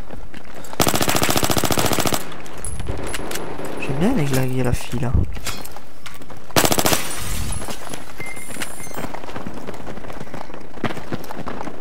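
A pistol fires sharp shots.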